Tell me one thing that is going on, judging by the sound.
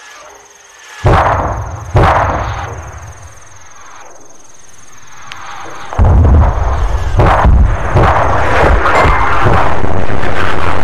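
Rockets roar loudly as they launch into the sky.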